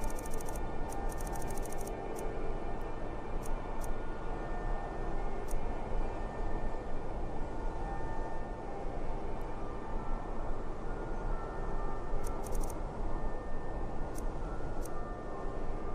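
Soft menu clicks tick quickly one after another.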